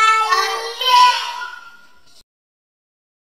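A young girl speaks loudly and with animation, close by.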